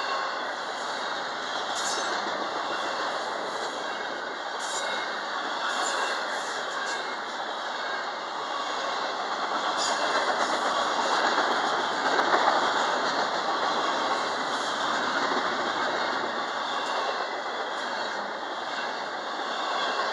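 A long freight train rumbles steadily past close by.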